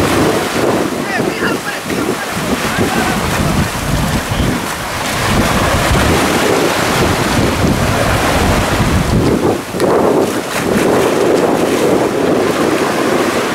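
Waves wash and splash onto the shore.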